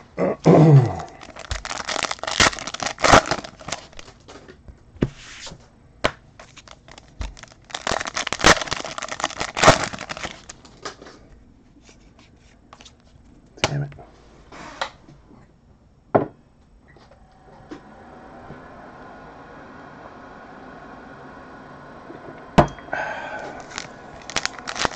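Cards click and tap against a tabletop.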